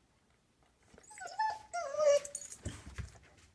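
A dog whines in short, rising and falling cries.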